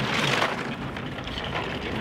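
A crowd cheers as a bobsled rushes past.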